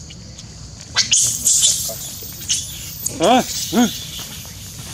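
Long-tailed macaques shriek during a scuffle.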